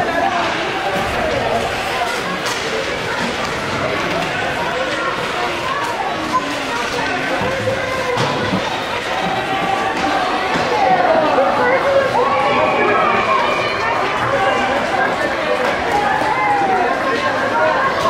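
Children shout and call out in a large echoing rink.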